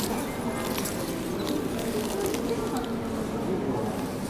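A plastic wrapper crinkles and rustles close by.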